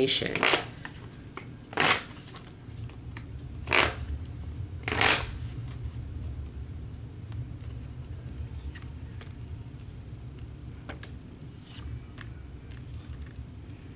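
Cards shuffle and slide softly.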